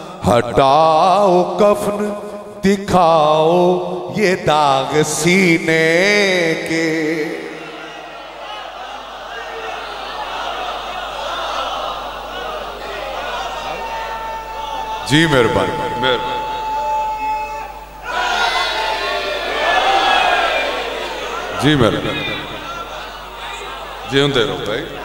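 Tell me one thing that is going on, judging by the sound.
A middle-aged man sings with feeling into a microphone, heard through loudspeakers in an echoing room.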